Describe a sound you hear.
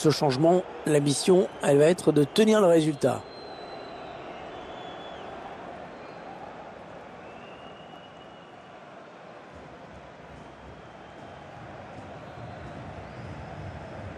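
A stadium crowd murmurs and roars steadily in the distance.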